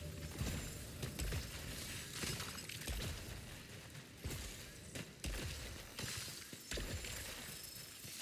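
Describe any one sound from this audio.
Electric zaps crackle sharply in short bursts.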